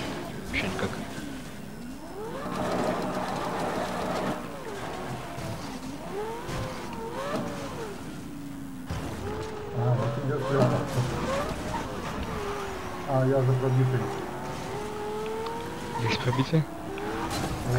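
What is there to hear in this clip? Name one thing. A sports car engine revs and roars, its pitch rising and falling with each gear change.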